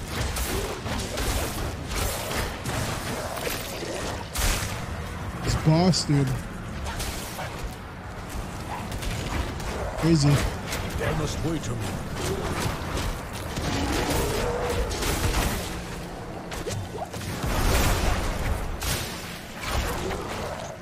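Game spells crackle and whoosh in rapid bursts.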